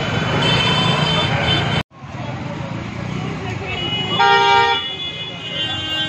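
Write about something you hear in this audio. Motor scooters rumble past close by.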